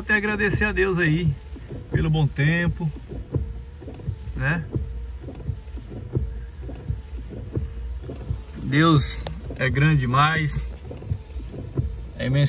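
Raindrops patter on a car windscreen.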